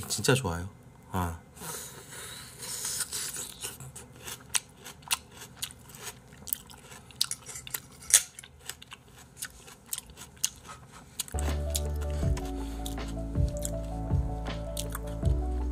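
A man bites and chews a juicy tomato close to a microphone.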